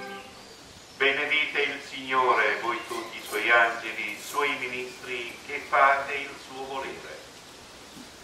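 A man chants into a microphone, heard through a loudspeaker.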